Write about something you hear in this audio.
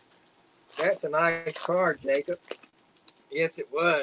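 A foil card wrapper crinkles as it is torn open.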